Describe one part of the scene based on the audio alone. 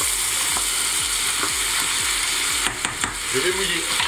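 A wooden spoon scrapes and stirs food in a metal pot.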